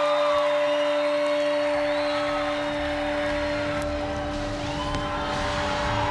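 A crowd cheers and whistles in a large echoing hall.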